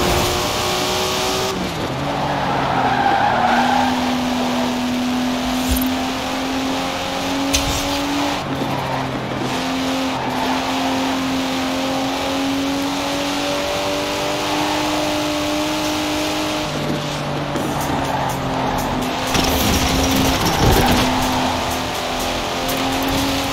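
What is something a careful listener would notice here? A car engine roars steadily at high speed, its pitch dropping and climbing again with each gear change.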